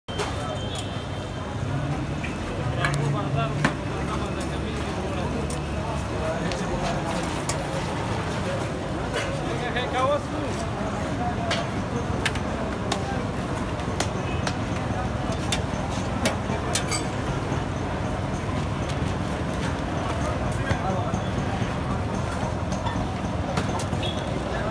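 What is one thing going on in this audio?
A busy outdoor street bustles with distant voices and traffic.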